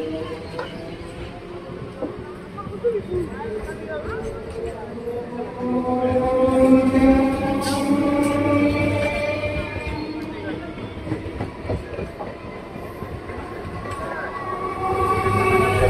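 An electric commuter train rumbles past a platform, pulling out of a station.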